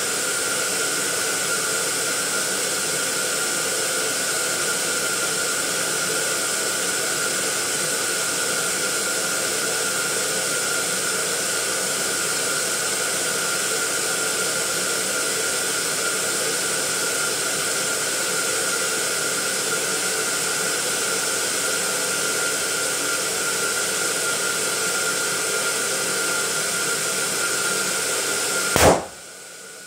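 Air hisses steadily as balloons inflate.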